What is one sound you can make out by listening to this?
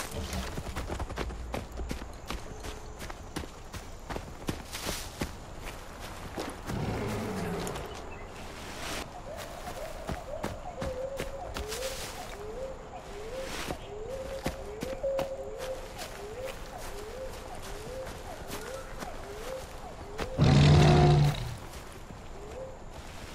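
Footsteps crunch through grass and scrape over rock.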